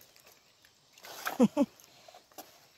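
A cast net splashes into the water.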